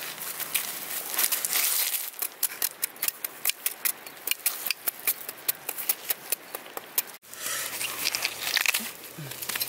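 Small stones clink and rattle as hands dig in the ground.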